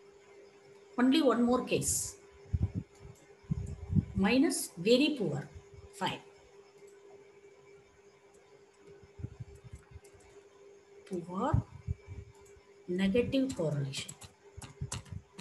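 A young woman speaks calmly into a headset microphone, in short bursts with pauses.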